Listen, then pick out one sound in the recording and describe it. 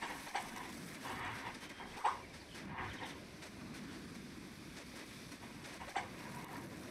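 Light footsteps patter on sand.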